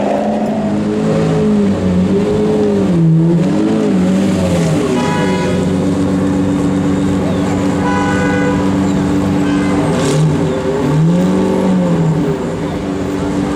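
A V12 sports car engine revs in sharp blips.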